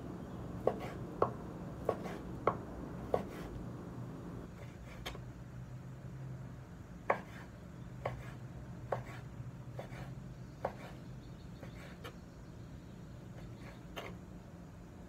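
A knife chops through meat and taps on a wooden board.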